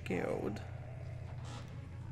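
A heavy metal door creaks as it is pushed open.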